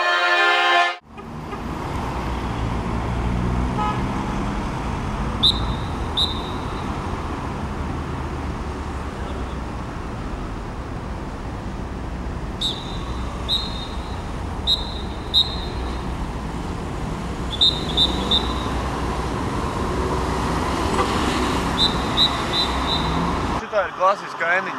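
Cars drive past on a busy road.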